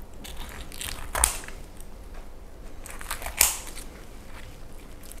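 Crispy roast chicken skin crackles as it is cut.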